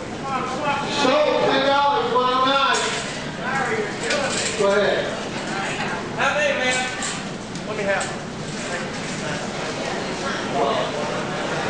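A man calls out loudly to a crowd in a large echoing hall.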